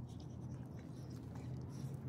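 A dog licks and slurps up close.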